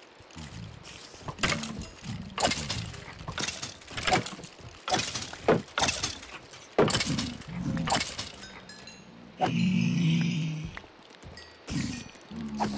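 Creatures grunt and groan in pain when hit.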